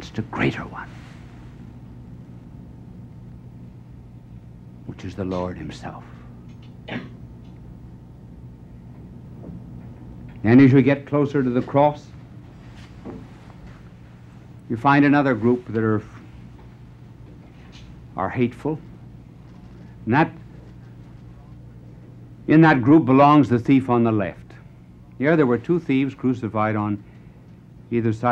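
An elderly man speaks slowly and dramatically, with long pauses.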